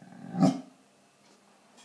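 A dog howls loudly up close.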